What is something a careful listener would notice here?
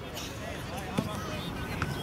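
A football is kicked.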